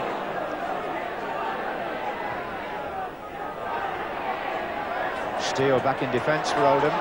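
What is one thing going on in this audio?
A large crowd murmurs and roars steadily outdoors.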